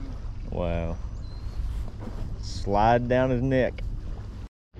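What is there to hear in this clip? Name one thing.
A man speaks close by in a relaxed voice.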